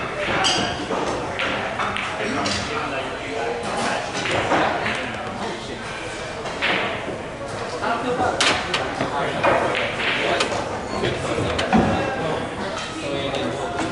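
A cue strikes a pool ball with a sharp tap.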